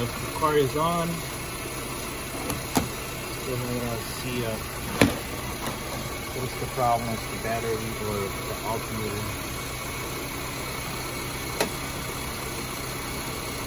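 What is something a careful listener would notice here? Plastic probes tap and click against metal.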